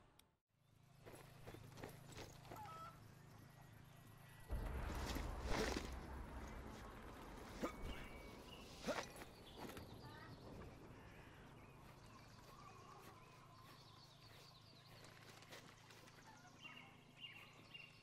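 Footsteps run across the ground and over wooden planks.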